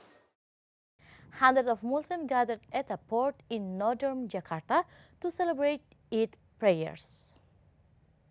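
A young woman speaks clearly and with animation, as if presenting news.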